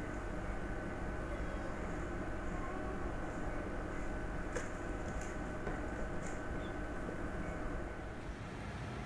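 Kittens scuffle and paw at each other, making soft rustling and thumps.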